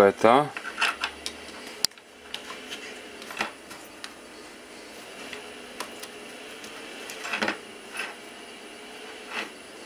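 Small clicks and crackles come from a little amplifier being handled and its knob turned.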